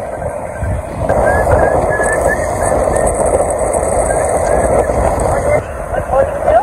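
A motorcycle engine hums as it rides past.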